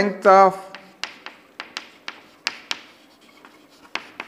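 Chalk taps and scratches on a blackboard.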